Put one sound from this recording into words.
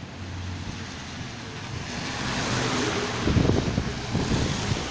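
A heavy truck rumbles past on a wet road.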